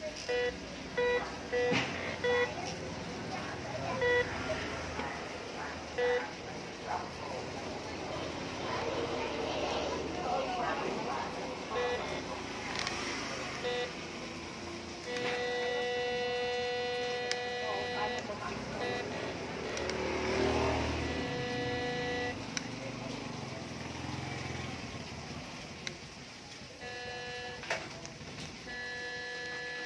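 A metal detector beeps in short, high electronic tones.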